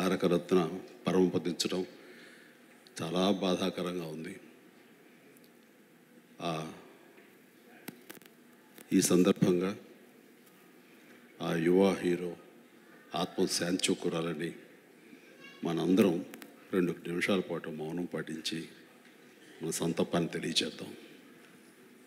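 A man speaks slowly and calmly into a microphone, with pauses, heard through loudspeakers.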